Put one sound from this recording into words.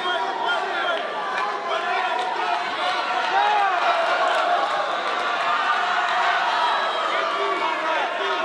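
A large crowd shouts and cheers loudly throughout.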